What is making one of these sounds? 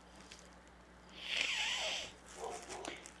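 A young man sniffs sharply through his nose.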